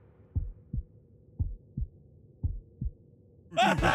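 Heavy footsteps thud in slow pairs.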